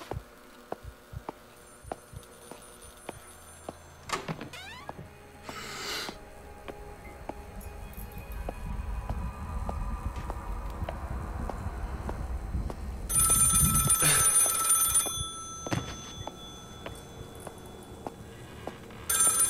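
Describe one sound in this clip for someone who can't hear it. Slow footsteps thud on a wooden floor.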